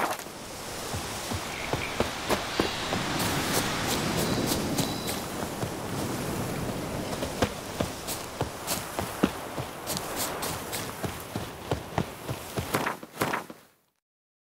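Footsteps thud quickly on grass as a figure runs.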